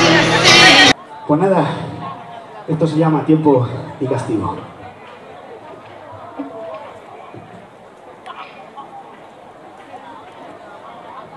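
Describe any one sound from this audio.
A rock band plays music on a distant outdoor stage.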